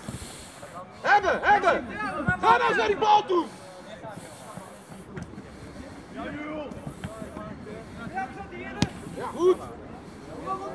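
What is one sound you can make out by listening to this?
Boys shout to each other across an outdoor pitch.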